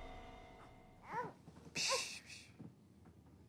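A baby cries briefly.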